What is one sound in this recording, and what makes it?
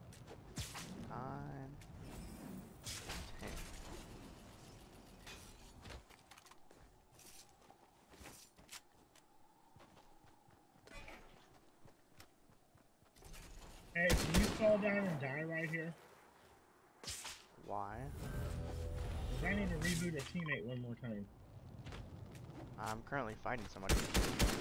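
A man talks with animation into a headset microphone.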